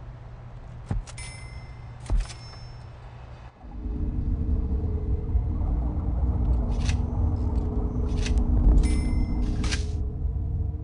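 Short electronic chimes sound as menu buttons are pressed.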